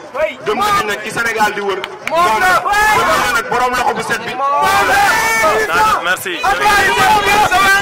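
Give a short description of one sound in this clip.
A young man speaks forcefully into a microphone, amplified through a loudspeaker.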